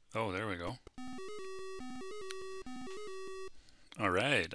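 A video game plays a short electronic beeping tune.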